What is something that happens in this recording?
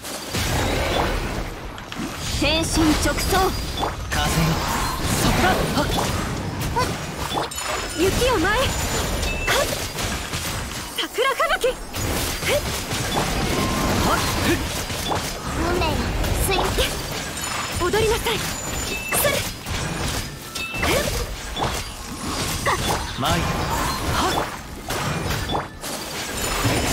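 Fast game battle effects whoosh, crash and chime throughout.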